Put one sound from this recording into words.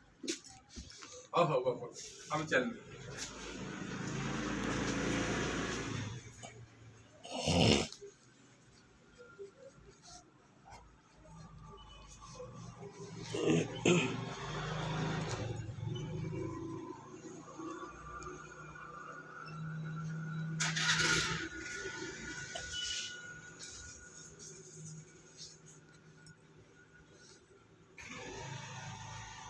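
A marker pen squeaks and scratches softly on paper.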